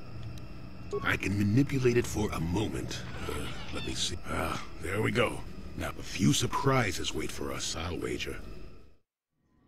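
An elderly man speaks calmly in a deep voice.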